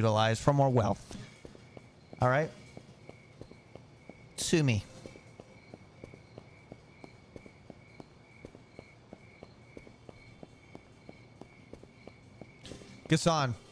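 Footsteps tap steadily on a pavement.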